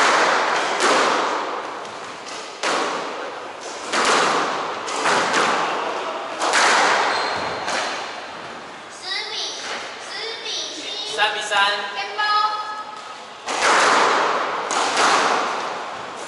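A squash ball smacks hard against the walls and echoes around a large, hard-walled room.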